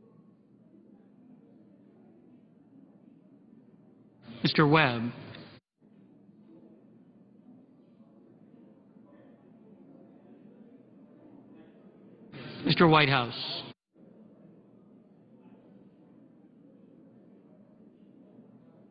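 Men and women murmur quietly in a large, echoing room.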